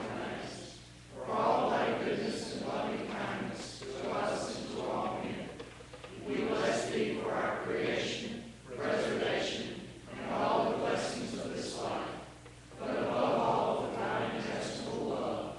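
A group of men and women recite together in phrases, in a large echoing hall.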